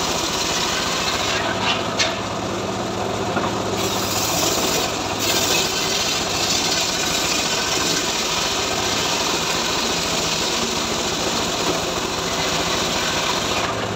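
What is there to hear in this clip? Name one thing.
An engine runs loudly and steadily.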